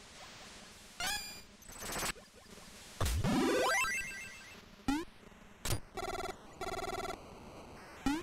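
Chiptune sound effects chirp and blip in quick bursts.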